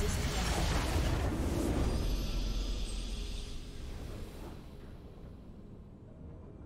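A triumphant game fanfare swells and fades.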